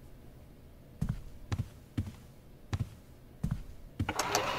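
Footsteps thud on a wooden floor, walking away.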